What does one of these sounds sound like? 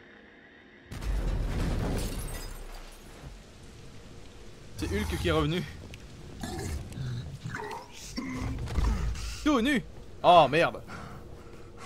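A large creature stomps heavily and roars.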